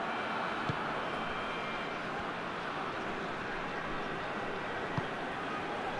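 A football is kicked with a dull thud.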